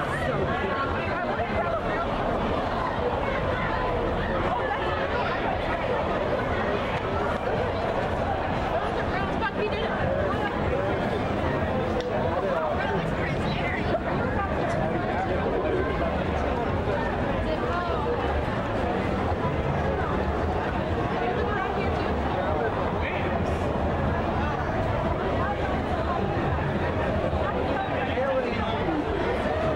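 A crowd of people chatters loudly all around outdoors.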